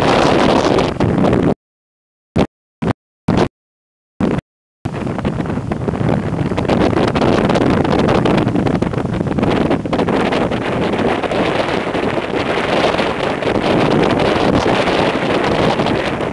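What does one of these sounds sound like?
Strong wind buffets the microphone outdoors on open water.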